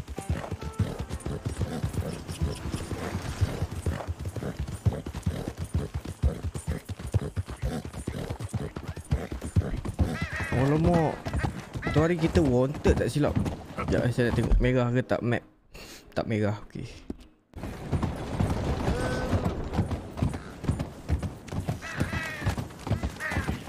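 A horse's hooves clop steadily along a road and over wooden planks.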